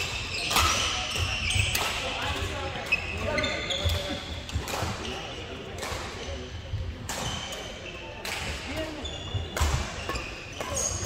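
Rackets strike shuttlecocks with sharp pops in a large echoing hall.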